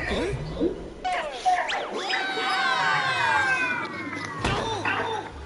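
Game sound effects swish and chime in quick sweeping tones.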